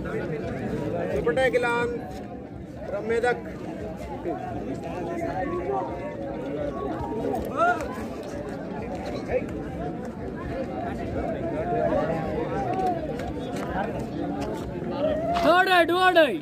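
A large crowd of young men chatters and shouts outdoors.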